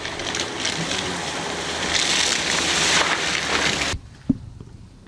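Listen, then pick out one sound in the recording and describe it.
Car tyres splash through muddy puddles.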